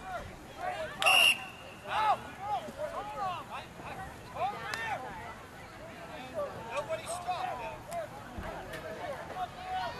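Young players call out and talk outdoors.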